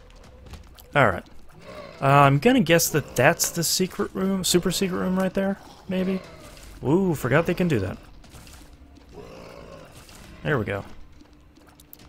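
Cartoon monsters groan and gurgle.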